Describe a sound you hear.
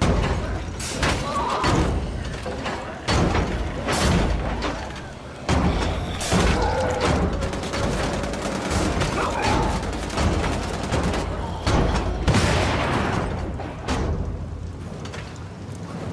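Guns fire loud, rapid shots.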